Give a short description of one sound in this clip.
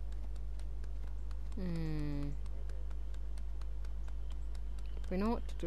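Goose feet patter quickly on pavement.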